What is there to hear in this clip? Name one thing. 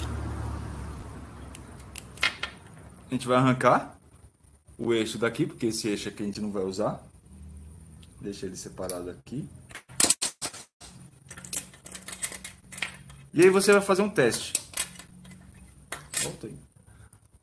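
Small metal parts click and tap.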